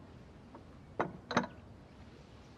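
A bowl clinks as it is set down on a table.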